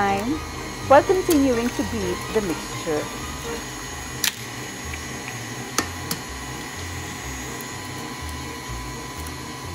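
A stand mixer whirs steadily as its whisk turns.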